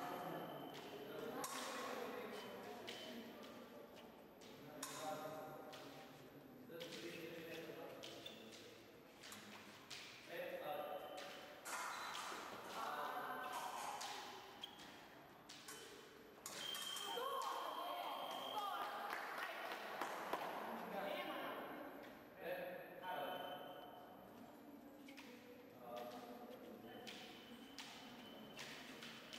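Voices murmur and call out in an echoing hall.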